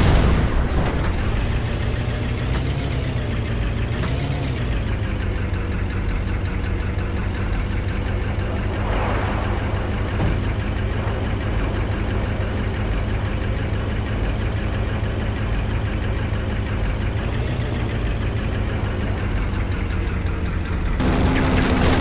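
A vehicle engine hums steadily, rising and falling as it drives.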